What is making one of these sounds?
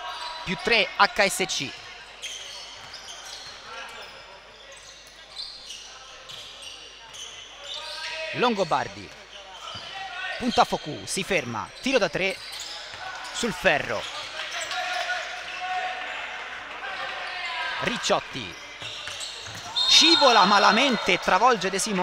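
Sneakers squeak sharply on a hard court in an echoing gym.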